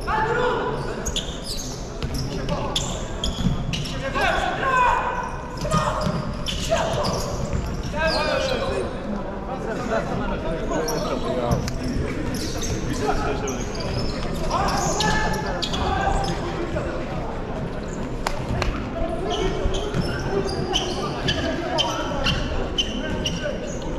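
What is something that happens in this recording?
Spectators chatter and call out, echoing in a large hall.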